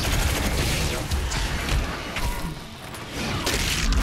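A demon snarls and roars.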